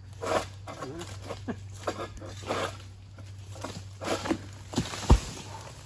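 Palm fronds rustle and scrape as a pole pushes through them.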